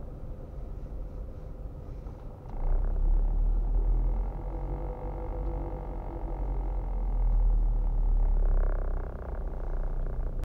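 A car engine hums from inside the car as it drives slowly.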